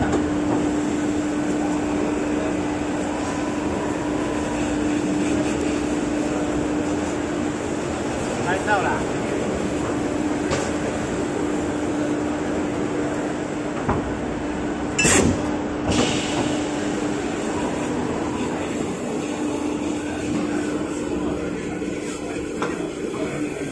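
Paper sheets rustle and slide as a man handles them.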